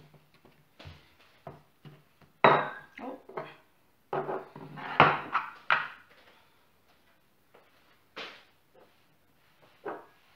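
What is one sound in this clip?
A wooden rolling pin rolls and knocks on a wooden board.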